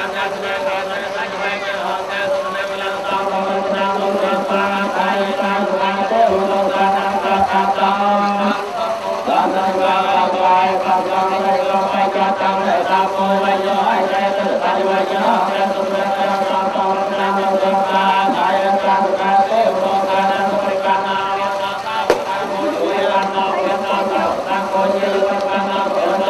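A group of men chant together in a steady drone.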